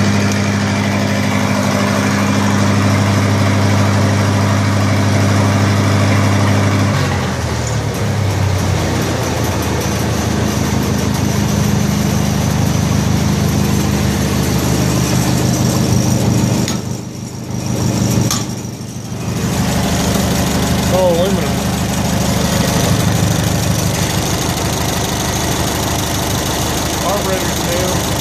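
A welder's petrol engine idles with a loud, steady rumbling drone that shifts speed partway through.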